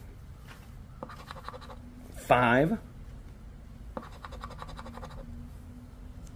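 A coin scratches across a paper ticket in short strokes.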